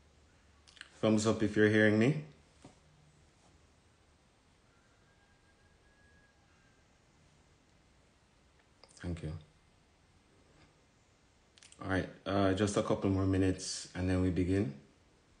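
A man speaks calmly and slowly, close to a microphone, with long pauses.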